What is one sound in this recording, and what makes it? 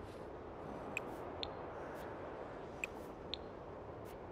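Soft game menu clicks sound a few times.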